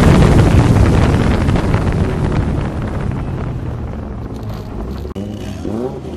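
A car engine roars loudly as the car speeds along a road.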